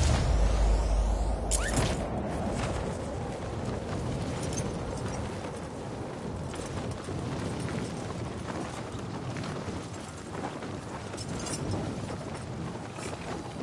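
Wind rushes steadily past during a fall through the air.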